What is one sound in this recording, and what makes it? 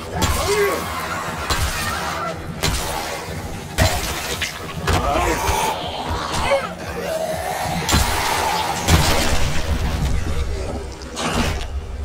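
A heavy bat thuds hard into bodies.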